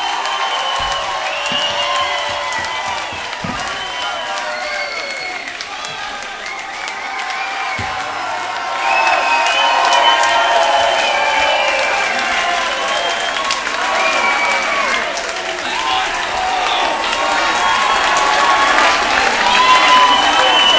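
A large crowd cheers and shouts in a large hall.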